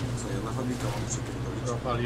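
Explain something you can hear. Branches and bushes brush against a car.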